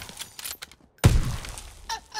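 A rifle fires a loud shot that booms and echoes.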